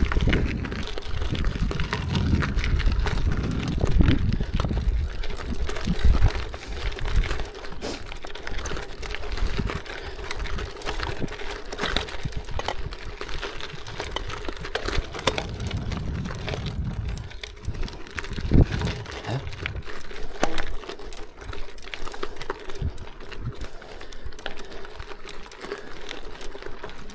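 Bicycle tyres crunch and rattle over loose gravel.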